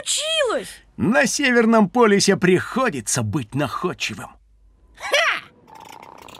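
A man speaks with animation in a comic voice.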